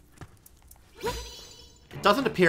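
A sword swishes through the air with a bright magical chime.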